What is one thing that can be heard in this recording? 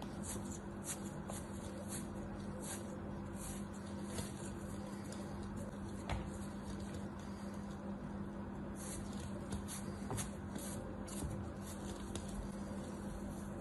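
Loose sand crumbles and patters down.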